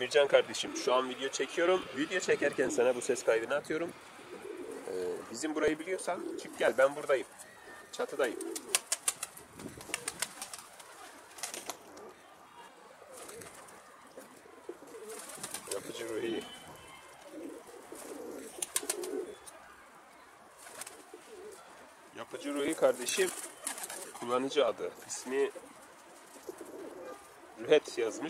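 Pigeons coo close by.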